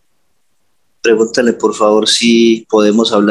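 A man speaks calmly through a headset microphone in an online call.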